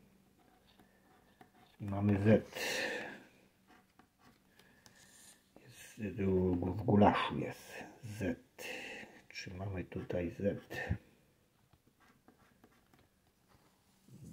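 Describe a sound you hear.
A scraper scratches at a paper card in short strokes.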